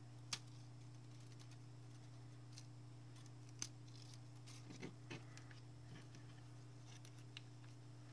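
Paper rustles and crinkles as it is peeled and handled.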